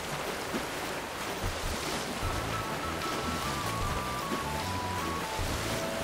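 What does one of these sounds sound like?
Water splashes steadily as something swims quickly.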